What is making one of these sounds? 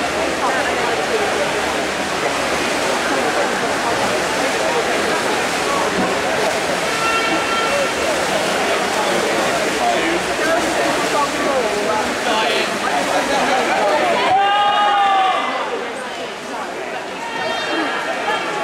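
A swimmer splashes through the water with fast butterfly strokes.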